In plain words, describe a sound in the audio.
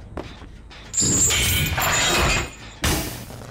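A machine clanks and rattles loudly as it is damaged.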